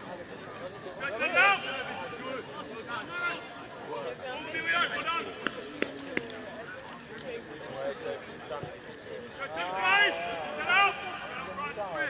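Young men cheer and shout in celebration.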